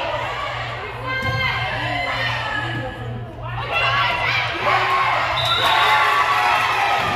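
A volleyball thuds off a player's arms.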